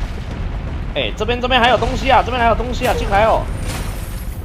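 A weapon fires a roaring blast of flame.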